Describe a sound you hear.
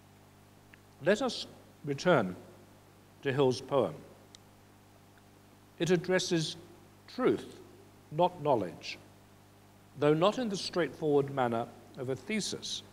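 An elderly man reads aloud slowly from a page, heard through a microphone.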